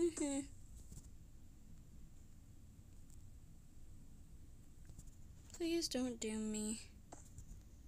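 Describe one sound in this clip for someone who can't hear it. A young girl speaks briefly and casually, close to a microphone.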